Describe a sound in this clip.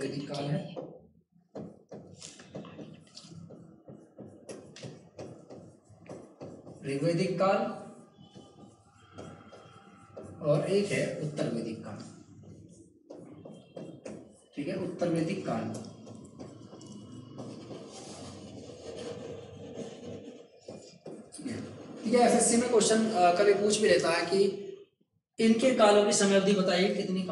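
A man lectures with animation through a close microphone.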